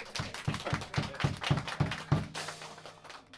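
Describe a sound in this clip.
An electric guitar plays a last run of chords and stops.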